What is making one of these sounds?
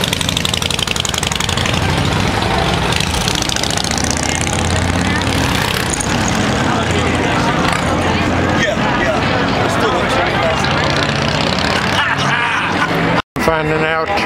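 A motorcycle engine idles with a deep, steady rumble nearby.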